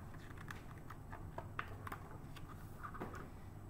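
A book page is turned.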